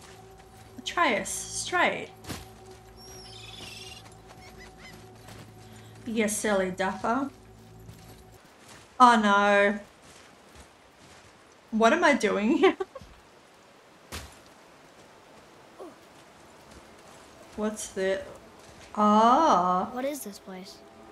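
A young woman talks with animation close to a headset microphone.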